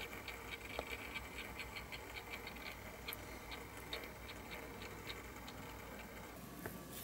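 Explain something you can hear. A small motorized turntable ticks steadily as it turns.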